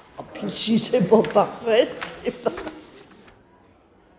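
An elderly woman laughs.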